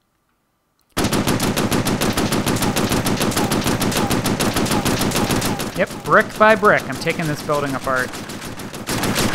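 An automatic gun fires in rapid, steady bursts.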